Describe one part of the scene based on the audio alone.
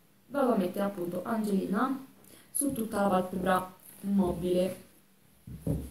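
A young woman speaks calmly and close to the microphone.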